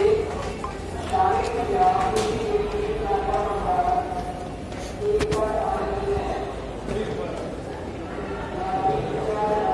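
Footsteps tap on stone stairs.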